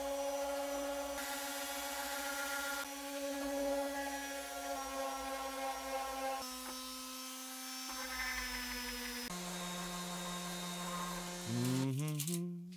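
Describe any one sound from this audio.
A random orbital sander whirs as it sands wood.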